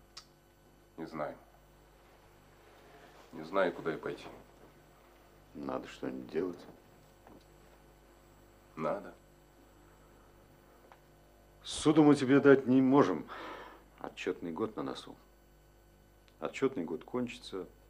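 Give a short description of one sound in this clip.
A younger man answers in a low voice nearby.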